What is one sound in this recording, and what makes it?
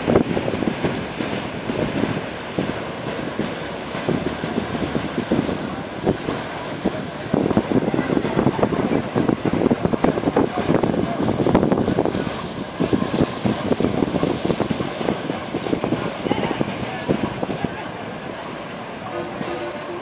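A boat engine hums as a tour boat passes close by.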